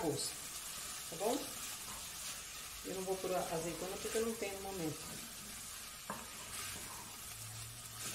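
A wooden spoon stirs and scrapes food in a metal pot.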